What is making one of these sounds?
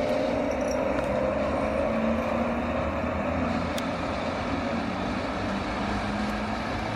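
An electric locomotive hums and whines steadily as it rolls slowly closer.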